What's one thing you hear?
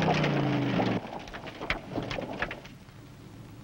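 Gravel and rocks crunch and scatter under a car.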